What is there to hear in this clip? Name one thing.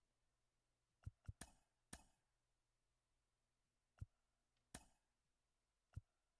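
Short sharp menu clicks sound now and then.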